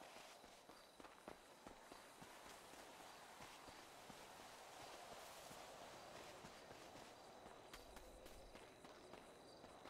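Footsteps crunch on dirt and rocks as a person runs.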